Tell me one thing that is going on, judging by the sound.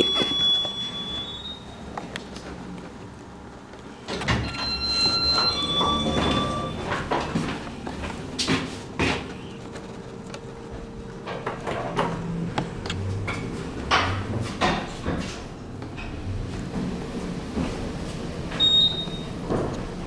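An elevator chime rings several times.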